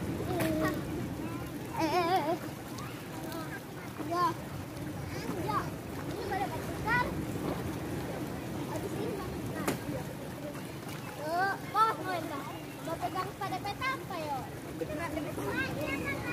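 Water splashes gently as children paddle.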